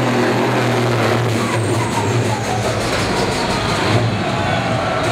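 A tractor engine roars loudly under heavy load.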